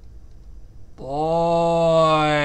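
A man holds a long drawn-out vocal note.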